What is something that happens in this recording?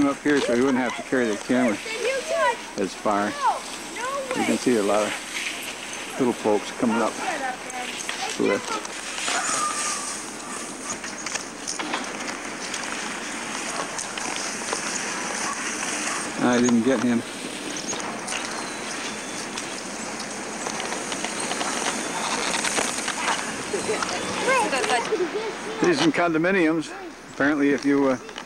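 A young person talks and calls out excitedly close by.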